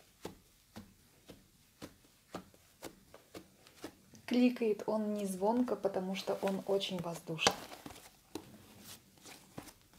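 Soft slime squishes and crackles with small pops under pressing fingers.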